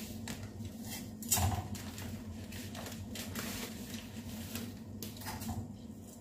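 Dry pasta rattles into a pot of water.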